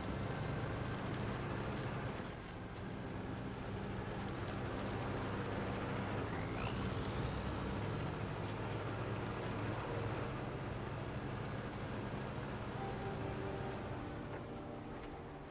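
A heavy truck engine rumbles steadily at low revs.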